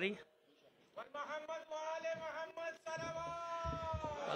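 An elderly man chants in a drawn-out voice through a microphone.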